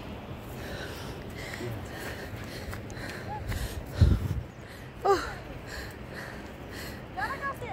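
Footsteps rustle through tall dry grass.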